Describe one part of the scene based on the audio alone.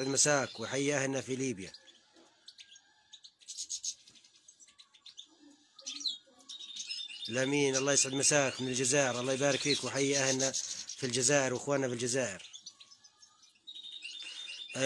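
Small birds chirp and twitter close by.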